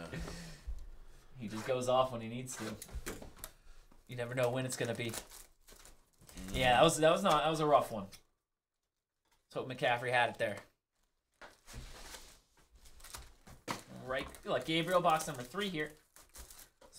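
Cardboard and plastic wrapping rustle and crinkle close by.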